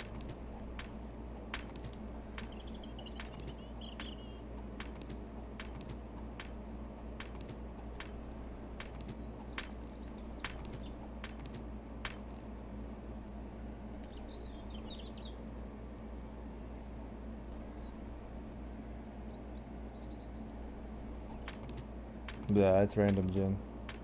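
An axe strikes stone with repeated sharp knocks.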